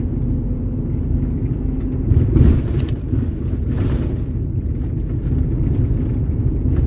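A vehicle's engine rumbles low and steady as it drives along a road.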